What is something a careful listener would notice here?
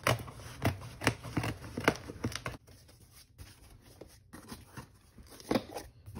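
A cardboard box rustles and thumps as its flaps are opened.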